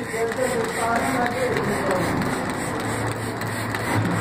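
A spray bottle hisses as it sprays.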